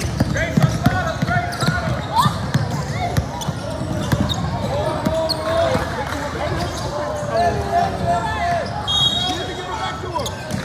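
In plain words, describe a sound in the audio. Players and spectators call out and chatter in a large echoing gym.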